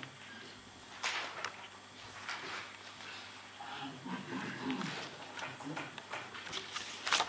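A man speaks calmly and slowly into a microphone.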